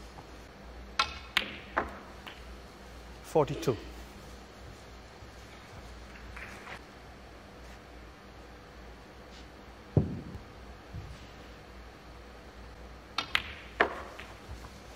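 Snooker balls knock sharply against each other.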